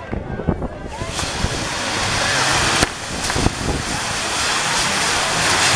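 Fireworks hiss and crackle steadily.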